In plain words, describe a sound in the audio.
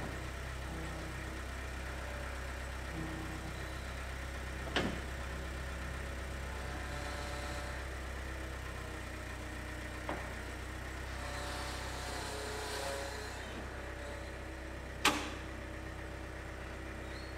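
A skid steer engine idles with a low, steady rumble.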